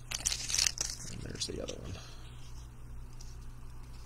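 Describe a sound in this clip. Trading cards shuffle and slide against each other.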